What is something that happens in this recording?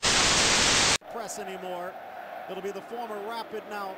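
A crowd murmurs and calls out in a large stadium.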